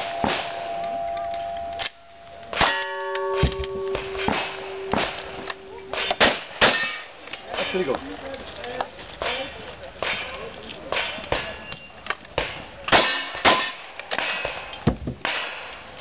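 A shotgun fires loud shots outdoors.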